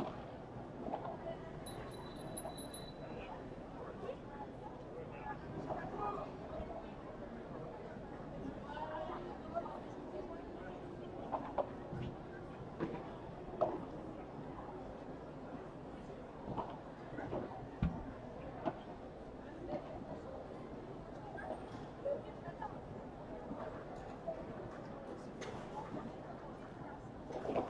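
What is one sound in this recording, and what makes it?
Padel rackets strike a ball with sharp pops, back and forth.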